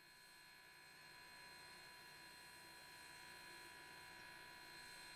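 A steam locomotive hisses softly while standing idle.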